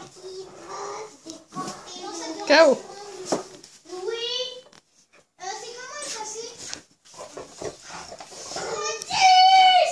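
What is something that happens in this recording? Two dogs growl and whine playfully up close.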